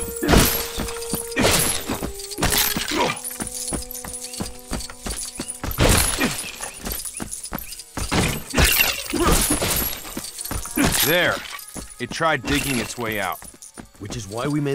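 Small coins chime in quick bright jingles as they are picked up.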